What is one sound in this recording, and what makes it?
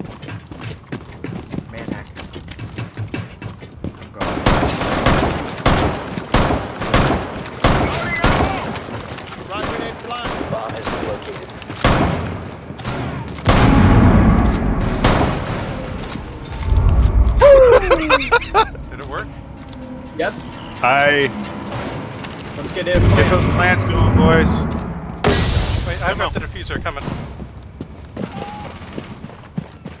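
Footsteps thud quickly on hard floors.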